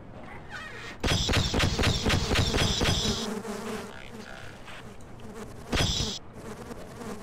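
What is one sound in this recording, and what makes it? A weapon fires a rapid burst of sharp shots.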